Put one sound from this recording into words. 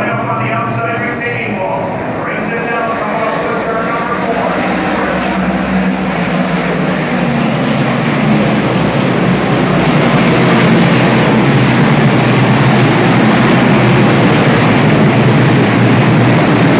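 Race car engines roar loudly around a dirt track, growing louder as the cars pass.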